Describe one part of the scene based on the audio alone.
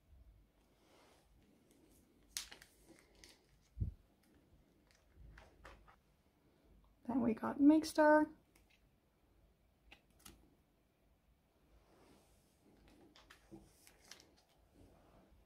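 Plastic sleeves crinkle and rustle softly as cards slide in and out.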